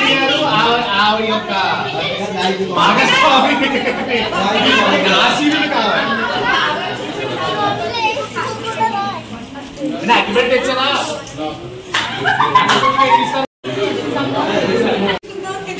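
A crowd of children and adults chatters.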